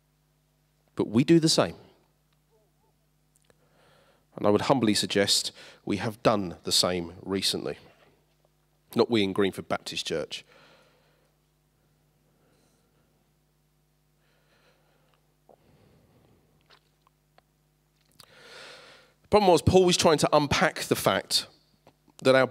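A man speaks through a microphone and loudspeakers in a large room, pausing between phrases.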